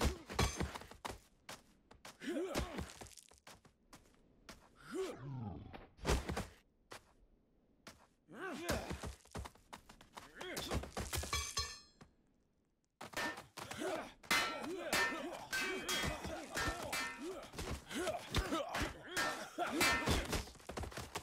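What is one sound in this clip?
Heavy blows thud and smack in quick bursts.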